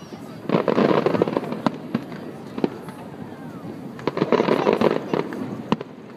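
Fireworks crackle and pop in rapid bursts outdoors.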